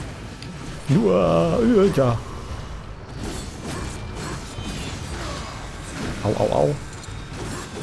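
A large beast roars with a deep, rumbling growl.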